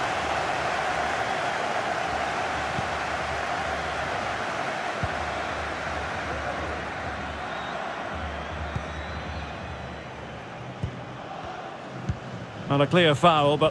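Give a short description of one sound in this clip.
A stadium crowd roars steadily and slowly fades.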